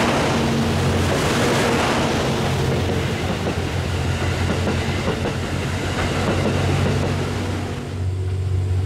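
A train rolls past on the tracks, its wheels clattering.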